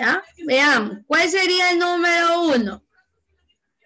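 A woman speaks in a drawn-out, sing-song voice over an online call.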